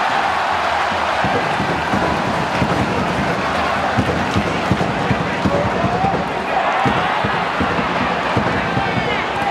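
A crowd drums a steady beat in the stands.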